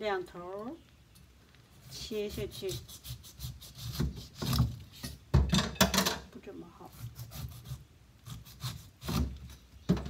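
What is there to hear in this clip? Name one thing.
A knife chops through a pineapple on a wooden board.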